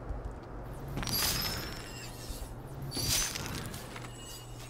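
Short bright chimes ring out in quick succession.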